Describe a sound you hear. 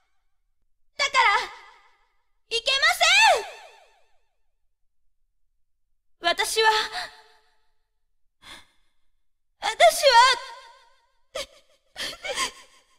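A young man talks with animation into a microphone, in short bursts.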